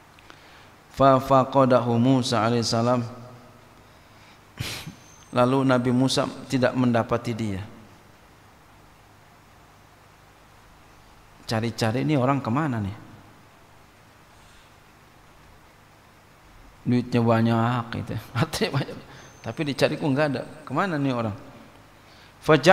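A man speaks slowly and calmly into a microphone, with pauses between phrases, in a slightly echoing room.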